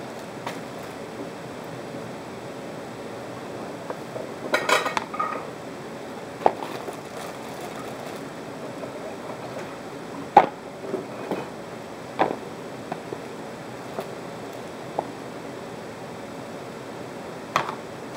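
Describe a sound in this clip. Baby carrots clatter as they are dropped into a plastic dish.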